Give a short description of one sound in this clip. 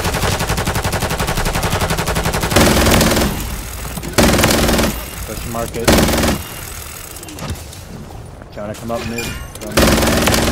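A minigun fires in rapid bursts.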